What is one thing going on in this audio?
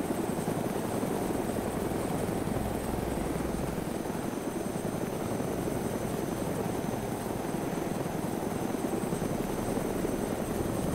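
A helicopter's rotor chops and its engine roars steadily.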